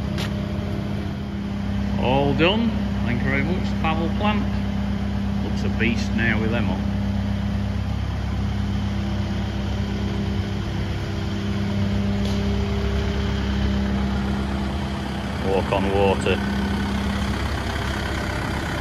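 A large diesel engine idles with a steady low hum.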